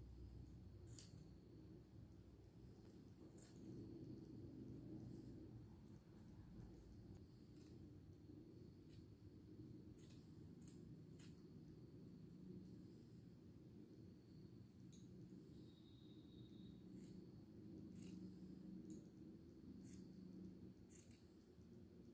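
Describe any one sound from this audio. Knitting needles click softly now and then.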